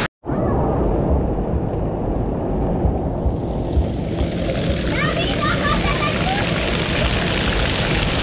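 Water pours and splashes from overhead sprays.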